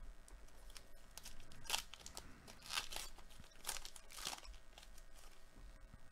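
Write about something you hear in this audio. A foil wrapper crinkles and tears as it is pulled open.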